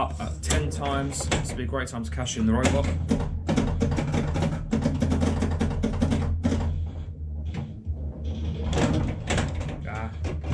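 A pinball machine hums steadily.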